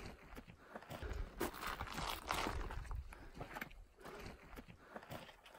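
Boots scrape and crunch on rock.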